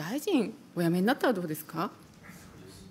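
A middle-aged woman speaks firmly into a microphone.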